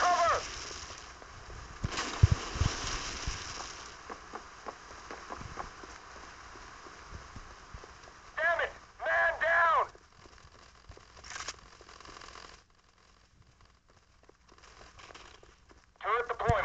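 Footsteps thud and crunch on wood and dirt.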